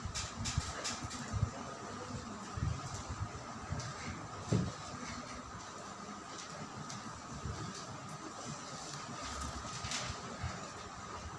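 An electric fan whirs steadily.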